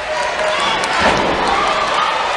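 A body slams heavily onto a wrestling ring mat with a deep thud.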